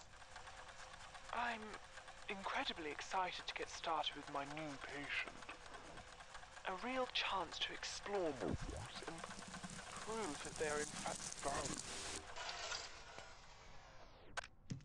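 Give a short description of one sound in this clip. A film projector whirs as its reels spin.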